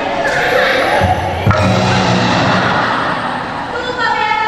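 An audience laughs and cheers in an echoing hall.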